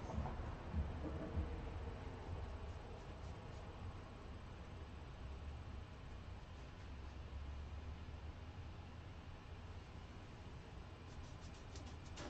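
A paintbrush softly brushes across a canvas.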